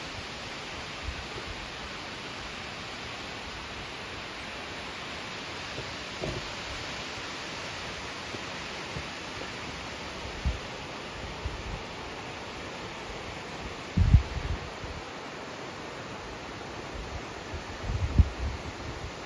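Wind gusts softly across the microphone.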